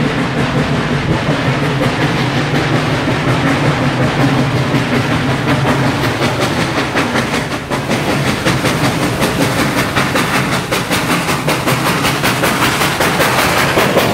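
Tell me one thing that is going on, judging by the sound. A steam locomotive chuffs rhythmically as it approaches and passes close by.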